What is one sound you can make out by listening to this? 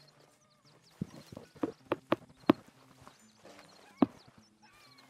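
Footsteps thud on grass.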